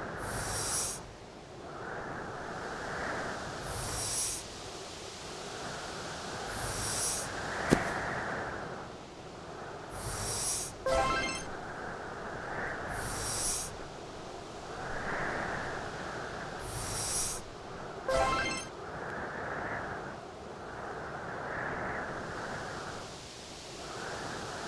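A heavy stone block scrapes as it slides across ice.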